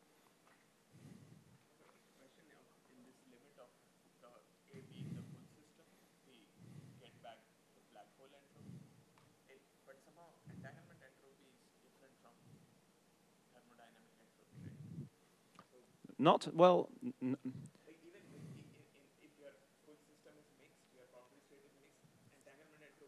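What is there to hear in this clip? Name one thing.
A man speaks calmly through a microphone, pausing often.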